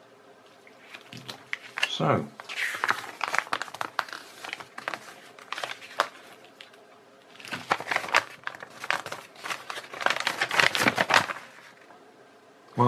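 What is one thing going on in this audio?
Paper crinkles and rustles as a sheet is unfolded and handled.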